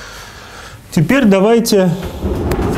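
A man speaks loudly in an echoing room.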